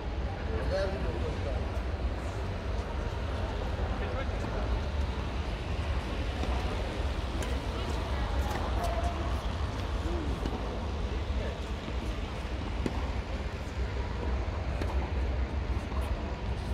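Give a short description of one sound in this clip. Badminton rackets hit a shuttlecock with light pops.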